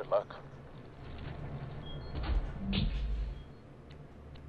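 A heavy metal vault door clunks and rumbles open.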